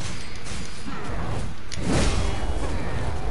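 A heavy blast booms and crackles.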